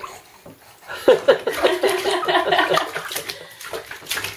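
A baby laughs close by.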